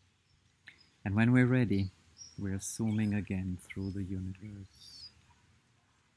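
A wooden flute plays slow, breathy notes.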